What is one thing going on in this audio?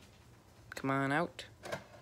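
A button clicks on a game console.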